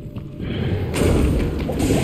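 Weapon blows strike a monster in a fight.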